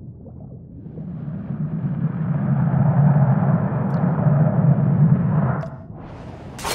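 A glass bowl rolls and rumbles across wooden boards.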